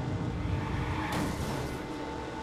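A car crashes into another car with a crunch.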